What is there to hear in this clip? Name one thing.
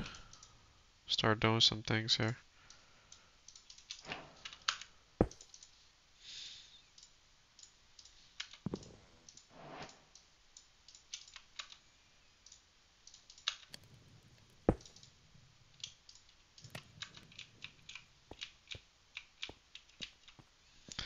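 Quick soft clicks sound as items are moved about.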